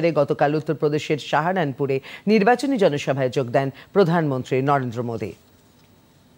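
A woman reads out the news calmly and clearly into a microphone.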